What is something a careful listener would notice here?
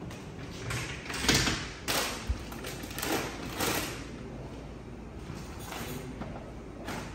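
Household items clink and rustle as they are moved about on shelves.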